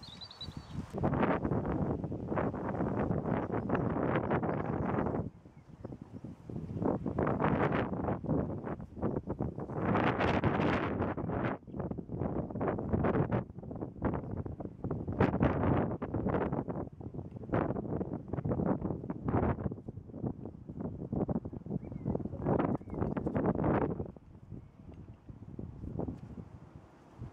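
Strong wind gusts roar across the microphone outdoors.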